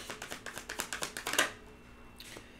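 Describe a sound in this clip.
Playing cards are shuffled with quick, rapid flicks.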